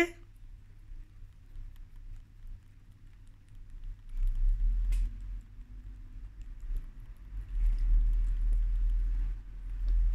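A rat licks and nibbles at a plastic food pouch up close.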